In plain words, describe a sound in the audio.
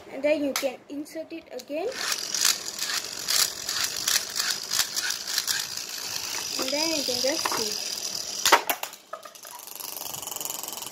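A plastic toy launcher clicks.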